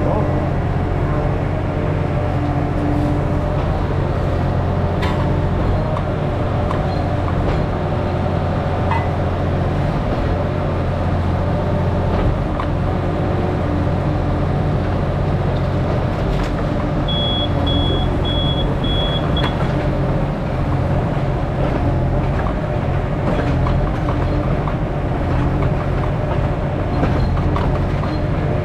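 A small excavator's diesel engine rumbles steadily up close.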